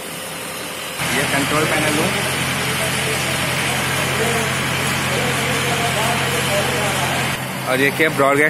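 Men talk quietly in a nearby room.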